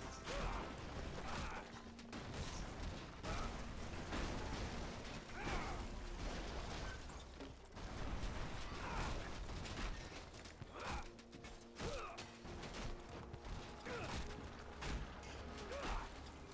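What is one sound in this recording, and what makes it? Metal structures crash and clatter as they break apart.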